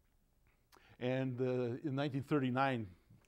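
An elderly man speaks with animation through a clip-on microphone.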